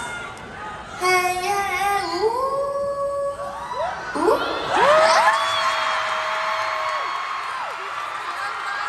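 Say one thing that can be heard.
A young woman sings a few notes through a microphone.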